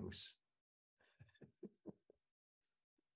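An elderly man laughs softly through an online call.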